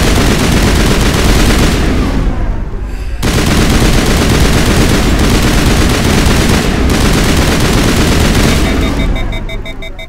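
Guns fire rapidly and loudly in close bursts.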